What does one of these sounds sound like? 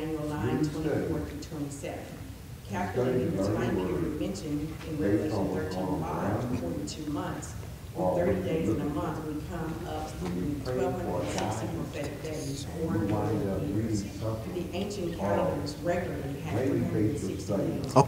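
An elderly man speaks steadily, reading aloud in a room with a slight echo.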